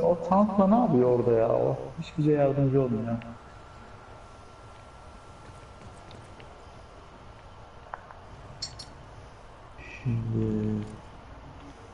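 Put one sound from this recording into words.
A man speaks casually into a nearby microphone.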